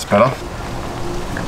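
A man speaks briefly up close.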